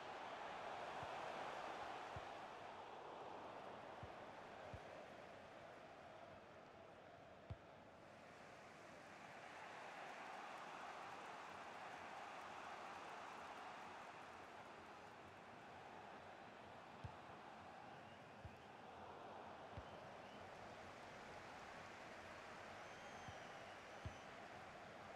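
A football is kicked now and then with short dull thuds.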